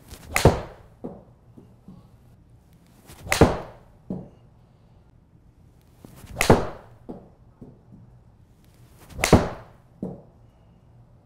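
A golf club strikes a ball with a sharp crack, several times.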